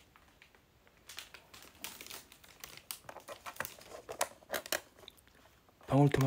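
A plastic package crinkles and rustles in a hand.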